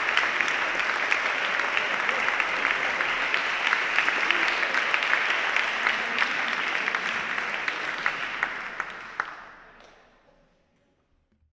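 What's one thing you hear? A large crowd applauds loudly, then the clapping fades away.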